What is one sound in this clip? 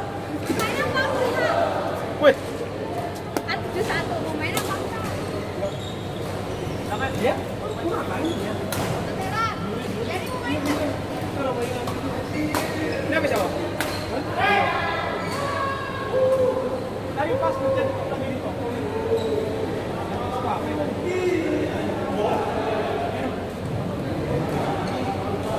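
Several young people talk and call out in a large echoing hall.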